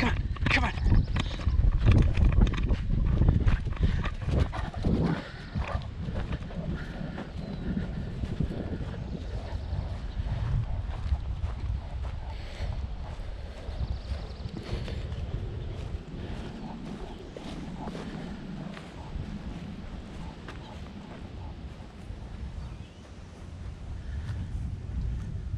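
Footsteps crunch over dry grass and leaves while running.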